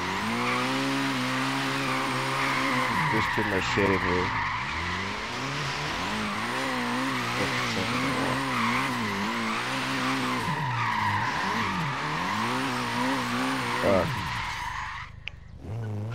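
Tyres screech in a long drift.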